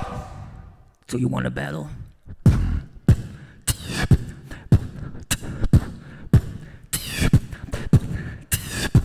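A young man beatboxes into a microphone with sharp, punchy beats.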